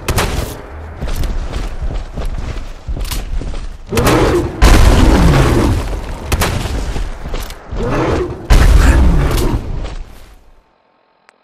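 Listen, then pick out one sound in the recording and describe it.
A monster roars and growls.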